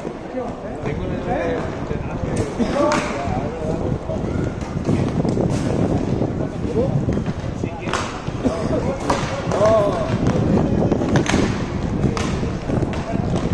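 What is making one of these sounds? Inline skate wheels roll and scrape across a hard rink surface.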